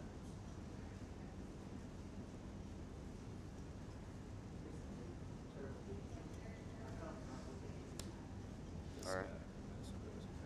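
Playing cards shuffle and tap softly on a table.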